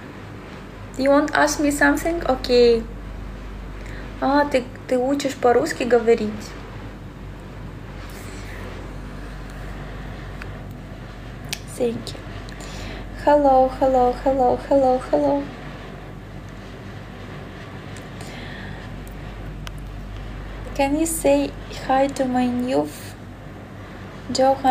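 A young woman talks casually and close by, with pauses.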